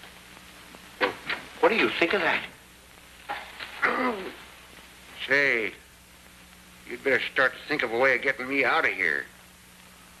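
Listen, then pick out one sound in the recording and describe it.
A second man answers tensely, close by.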